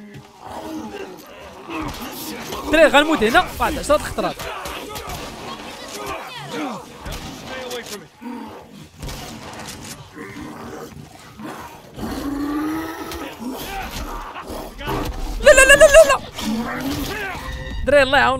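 A creature shrieks and growls loudly.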